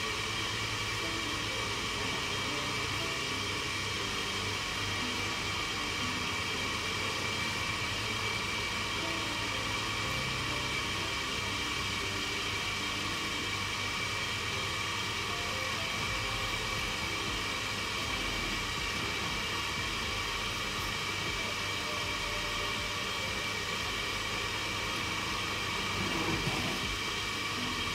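Food bubbles softly in a covered pan.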